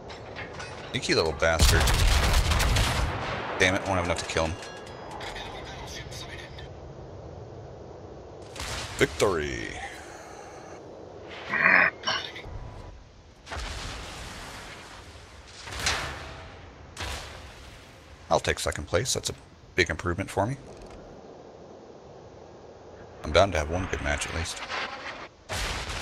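Heavy ship guns fire with loud, deep booms.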